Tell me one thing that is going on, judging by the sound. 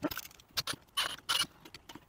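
A cordless drill whirs briefly.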